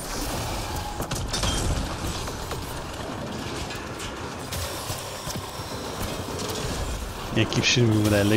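Energy beams crackle and hiss.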